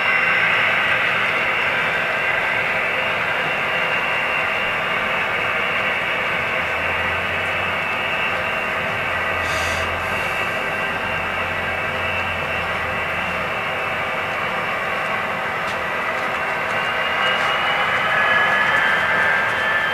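A model train rumbles and clicks along its track, moving steadily away.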